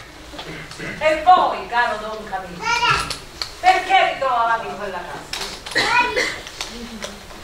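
A young woman speaks with animation, heard from the audience in a hall.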